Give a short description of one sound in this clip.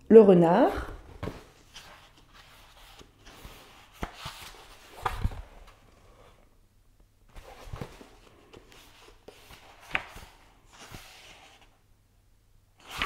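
Book pages rustle and flip.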